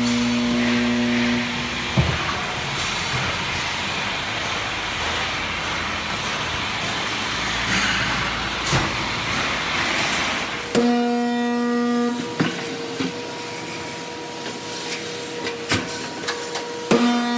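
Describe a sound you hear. Industrial machinery hums and roars steadily.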